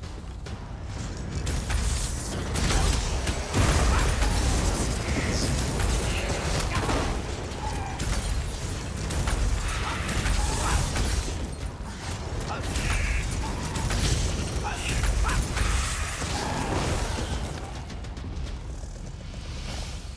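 Magic spells crackle and blast in a fierce fight.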